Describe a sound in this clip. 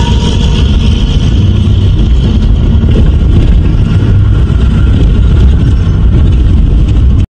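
A vehicle's engine rumbles steadily from inside the cab.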